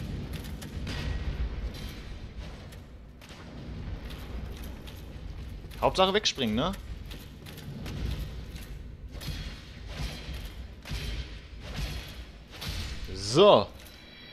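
Metal weapons clang against armor.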